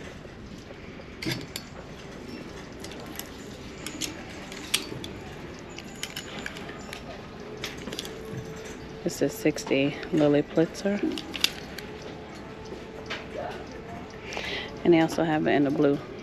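Plastic hangers click and scrape along a clothes rail.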